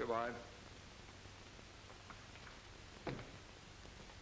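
A door opens and clicks shut.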